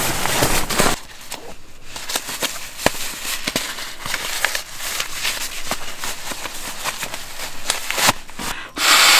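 Fabric crinkles softly as it is handled in hands.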